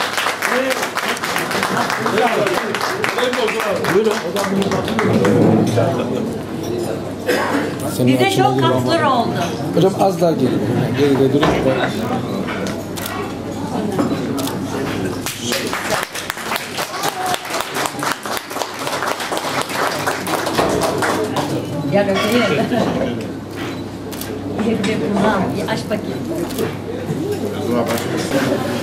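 Several women and men chat and laugh cheerfully nearby.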